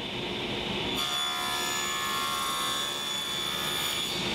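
A table saw blade cuts through a wooden board with a high whine.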